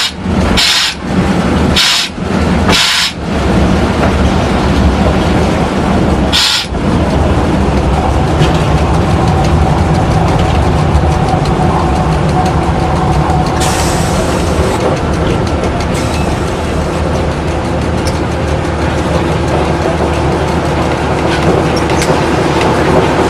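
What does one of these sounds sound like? A small locomotive engine rumbles steadily from inside the cab.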